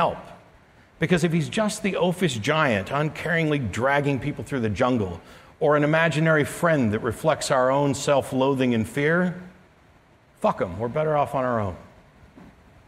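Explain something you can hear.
A middle-aged man speaks calmly through a microphone in a large hall.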